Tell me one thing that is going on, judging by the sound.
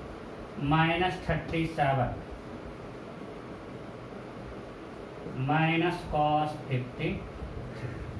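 A man speaks calmly, as if explaining, in short phrases.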